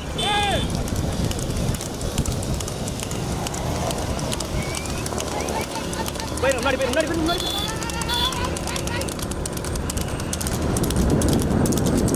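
Cart wheels rattle along a road.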